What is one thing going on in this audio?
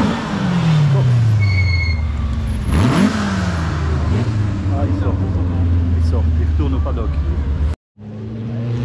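A rally car engine roars as the car speeds past.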